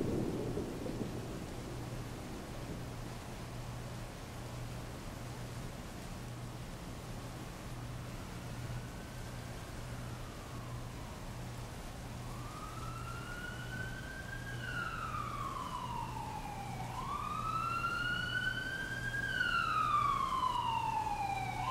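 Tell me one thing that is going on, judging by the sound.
Heavy rain pours steadily onto a wet street.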